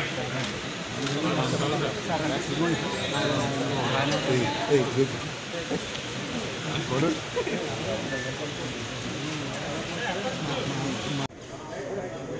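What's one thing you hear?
A crowd of men chatter and call out nearby.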